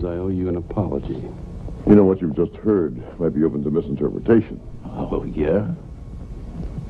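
A man speaks in a calm, deep voice.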